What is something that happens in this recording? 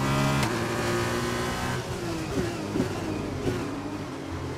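A racing car's gearbox clicks through quick downshifts.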